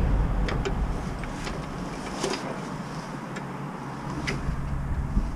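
Metal tools click and clink sharply now and then close by.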